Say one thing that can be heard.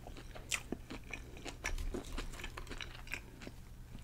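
Crisp chips rustle as fingers pick them up.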